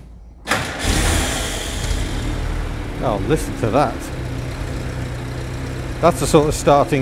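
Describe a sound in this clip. An old engine idles with a low, steady rumble.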